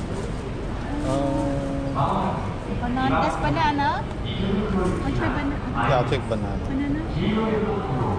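A middle-aged woman talks close by with animation.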